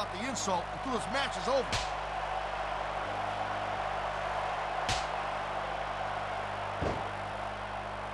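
A crowd murmurs and cheers steadily.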